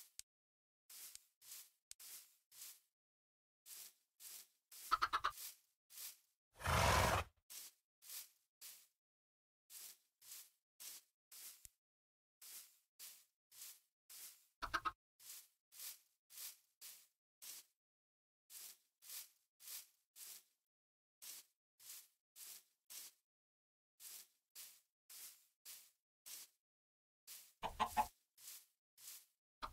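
Footsteps thud steadily in a quick walking rhythm.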